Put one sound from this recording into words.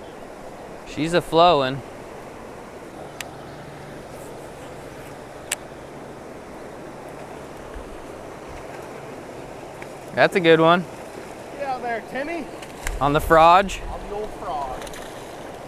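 A man close by speaks and calls out with excitement.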